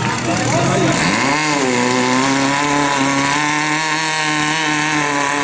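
A pump engine starts up, revs quickly and then runs loudly and steadily.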